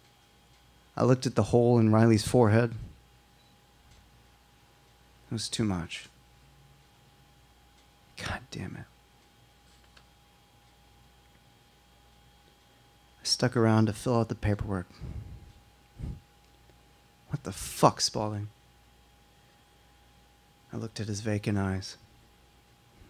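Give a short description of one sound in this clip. A young man reads out slowly into a microphone, in short phrases with long pauses.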